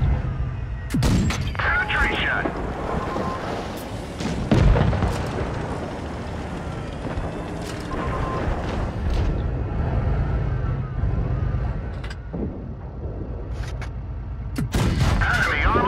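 A tank cannon fires with loud booming shots.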